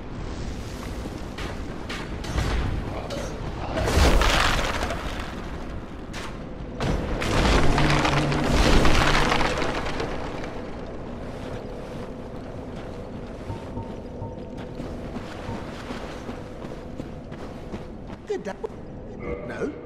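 Armoured footsteps crunch over rough ground.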